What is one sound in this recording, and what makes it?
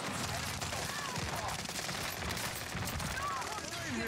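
Gunfire pops in a game.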